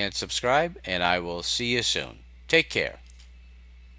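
An older man talks calmly into a microphone, close by.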